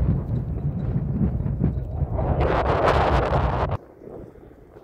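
Wind gusts loudly across the microphone outdoors.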